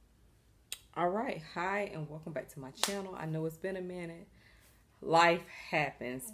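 A young woman talks calmly and close up.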